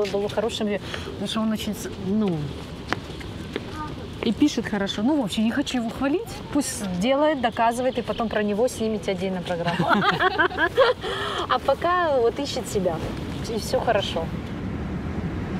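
A woman talks with animation close by.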